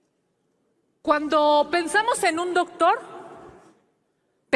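A middle-aged woman speaks forcefully into a microphone.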